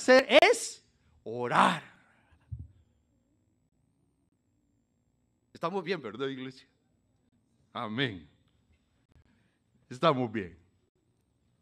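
An elderly man preaches with animation through a microphone, in short bursts with long pauses.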